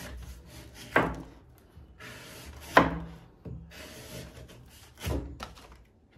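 Cut pieces of husk drop onto a wooden board with soft thuds.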